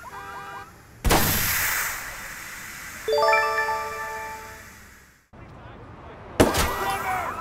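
A gun fires a loud shot that rings out.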